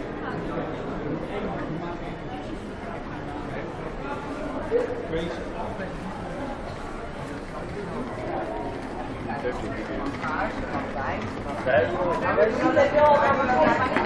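A crowd of passers-by chatters outdoors, growing louder and closer.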